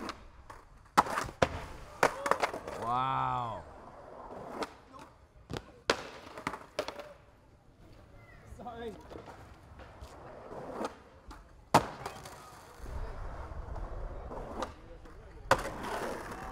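A skateboard clatters hard on pavement.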